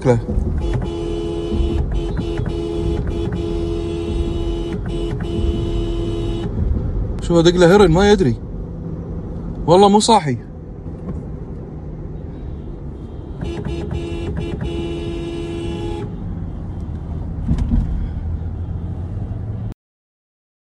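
Tyres rumble loudly on the road.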